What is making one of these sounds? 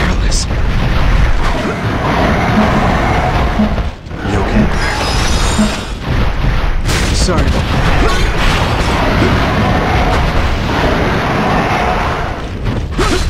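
Weapons clash and strike with heavy impacts.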